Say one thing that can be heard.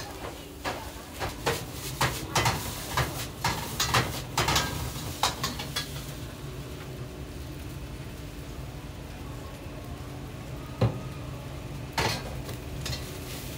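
Flames roar up in a burst of fire.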